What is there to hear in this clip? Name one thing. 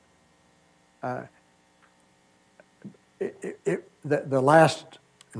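A man speaks into a microphone, lecturing with pauses.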